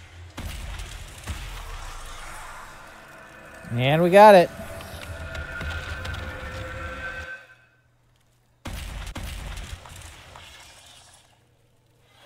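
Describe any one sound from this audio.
Magic energy crackles and roars loudly.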